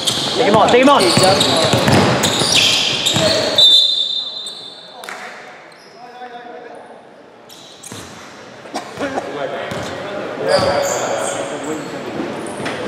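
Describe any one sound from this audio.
Young men shout in a large echoing hall.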